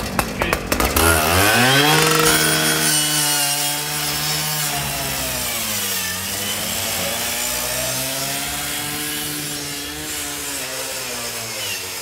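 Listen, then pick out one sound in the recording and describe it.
A gas-powered rescue saw roars and revs up and down.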